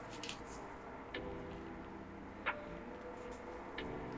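A plastic connector clicks into place.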